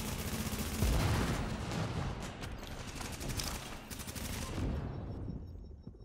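Rapid gunfire rattles with loud bangs.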